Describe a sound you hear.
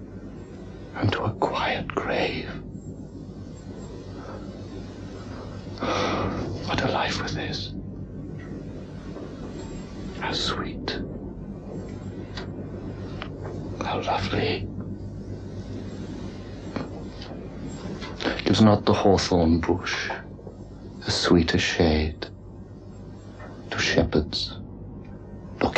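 A man speaks slowly and softly close by, with long pauses.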